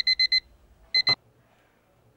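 A hand thumps down on an alarm clock.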